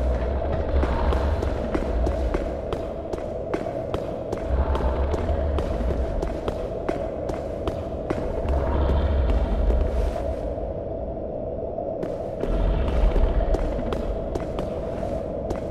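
Heavy armored footsteps clank on stone.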